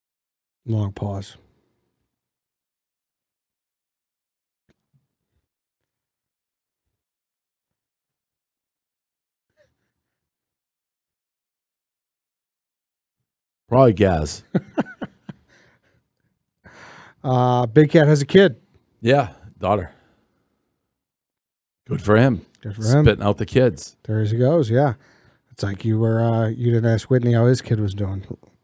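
A second man answers into a close microphone, talking with animation.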